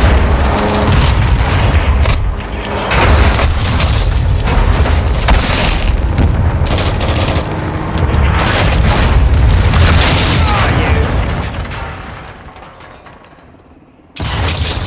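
A heavy vehicle engine rumbles loudly, then slowly fades away.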